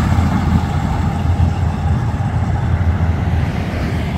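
A hot rod coupe's engine rumbles as it drives off.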